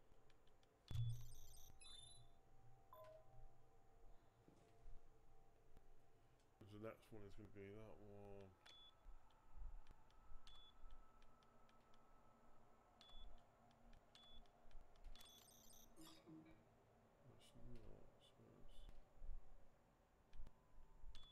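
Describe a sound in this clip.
Keypad buttons beep as a code is entered.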